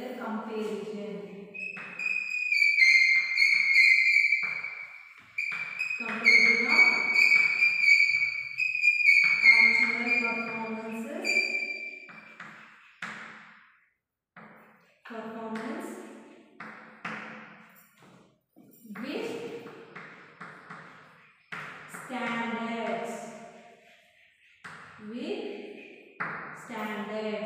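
Chalk squeaks and scratches on a board.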